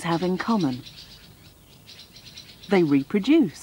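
Baby birds cheep rapidly in high thin voices.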